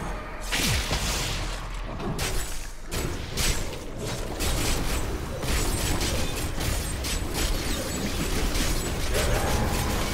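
Magic spells blast and crackle in a fierce fight.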